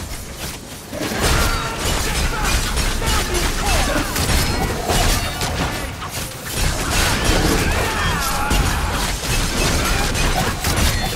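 Swords clash and strike in a fast fight.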